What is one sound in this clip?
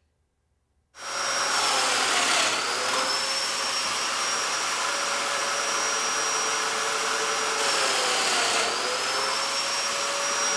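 A power sander whirs loudly and steadily.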